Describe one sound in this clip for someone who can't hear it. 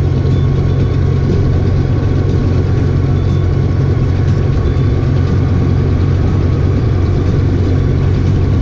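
A motorcycle engine hums steadily at close range.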